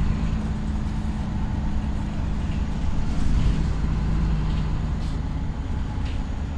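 A bus engine hums steadily, heard from inside.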